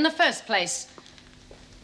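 A woman speaks briefly and sharply, close by.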